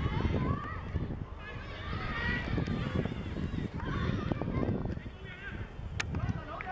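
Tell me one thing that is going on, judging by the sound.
Children shout excitedly outdoors.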